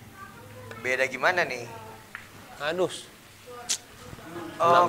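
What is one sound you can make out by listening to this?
Billiard balls clack together.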